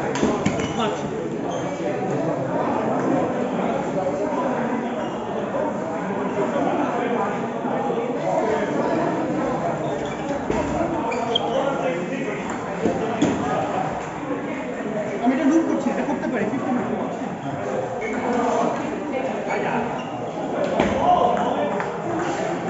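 Several people chatter in the background of an echoing hall.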